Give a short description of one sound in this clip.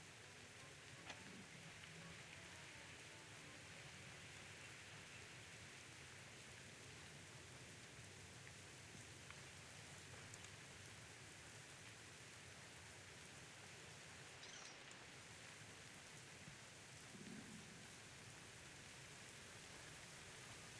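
Rain falls steadily with a soft hiss.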